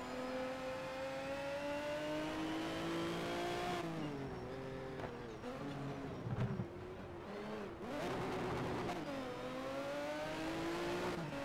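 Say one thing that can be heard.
A racing car engine accelerates at full throttle, with rising pitch.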